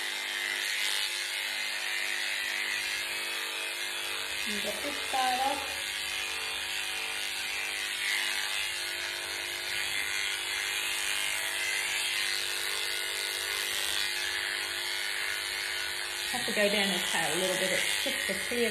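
Electric clippers buzz steadily.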